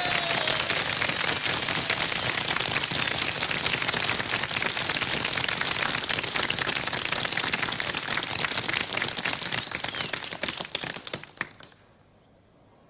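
A crowd claps and applauds in a large echoing hall.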